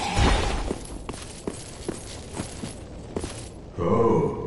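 Footsteps clank on stone.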